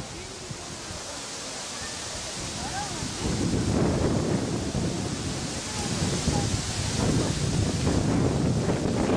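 Leaves rustle in a breeze outdoors.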